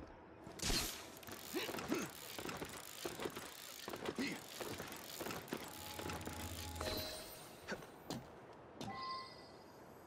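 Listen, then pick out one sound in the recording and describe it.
Boots scrape and thud on stone while climbing.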